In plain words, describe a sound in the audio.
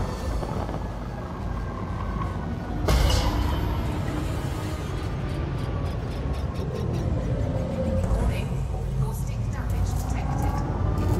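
A spaceship engine hums steadily and low.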